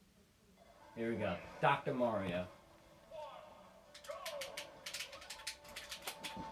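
Video game sound effects play from a television speaker, with sharp hits and bursts.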